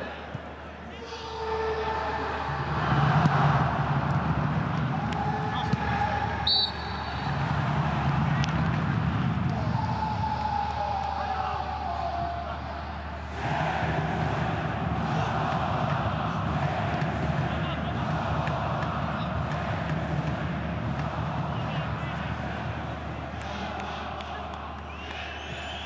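A large crowd in a stadium chants and roars.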